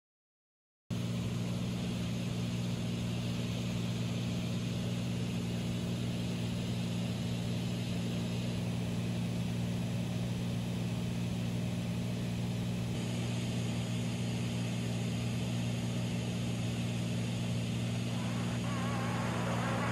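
A small plane's propeller engine drones steadily and loudly.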